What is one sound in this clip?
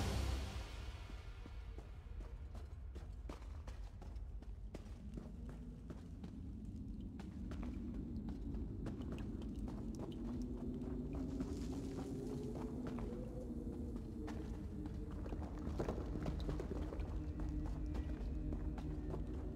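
Footsteps run quickly over rocky ground.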